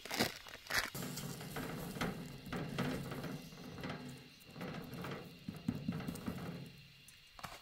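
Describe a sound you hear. Hands pat and press soft dough on a metal tray.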